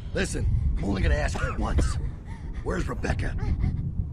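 A man speaks angrily and menacingly.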